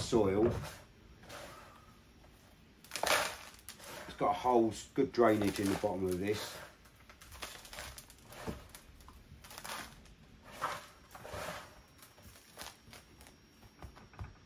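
Gravel rattles and crunches under a man's hands.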